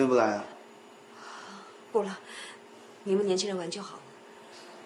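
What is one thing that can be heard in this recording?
A woman speaks softly and hesitantly, close by.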